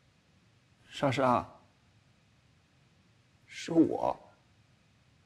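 A young man speaks quietly and close by.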